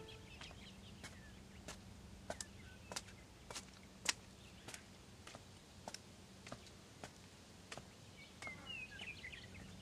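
Footsteps tap slowly on wet paving stones.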